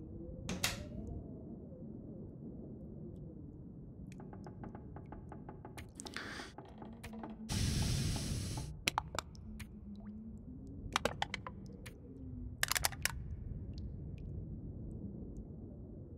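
Short soft clicks sound as items are moved.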